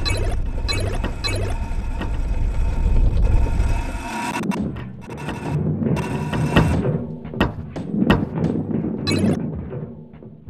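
A coin pickup chimes.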